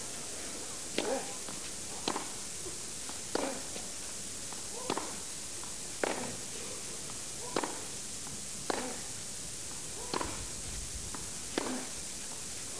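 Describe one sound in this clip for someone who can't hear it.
A tennis ball is struck back and forth with sharp pops at a steady pace.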